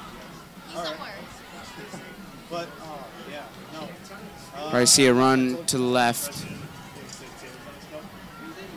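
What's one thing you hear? A crowd murmurs and cheers from the stands outdoors.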